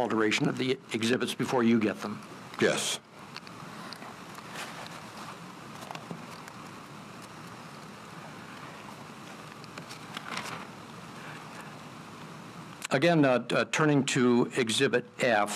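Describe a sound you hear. An elderly man reads aloud calmly into a microphone, with a long pause.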